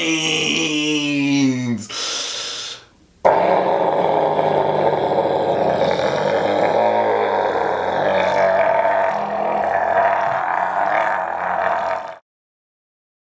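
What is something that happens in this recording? A young man shouts and roars loudly, close by.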